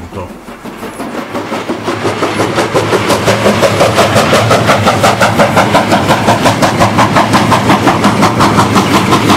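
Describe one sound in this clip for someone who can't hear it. A steam locomotive chuffs in a fast, steady rhythm, growing louder as it approaches.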